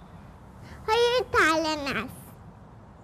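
A child calls out with excitement.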